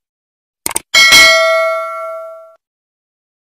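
A bell chimes brightly and rings out.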